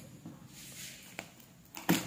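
Scissors snip at a box's plastic wrapping.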